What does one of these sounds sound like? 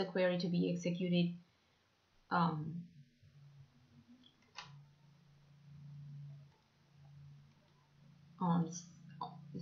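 A young woman speaks calmly into a microphone, as if presenting.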